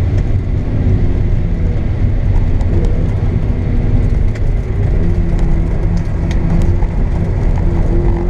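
Tyres rumble over the road.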